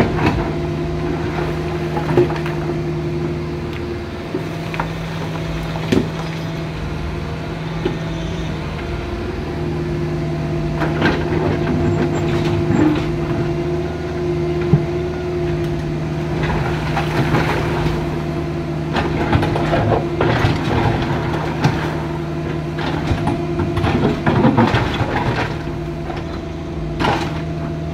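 A diesel excavator engine hums and whines steadily close by.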